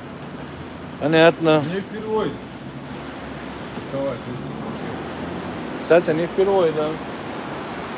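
A young man speaks close by in short bursts.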